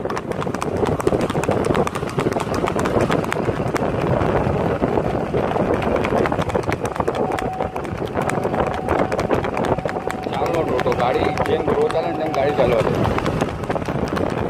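A horse gallops, its hooves pounding on a dirt track.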